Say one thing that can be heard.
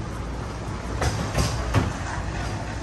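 A utility cart's wheels bump over a door threshold.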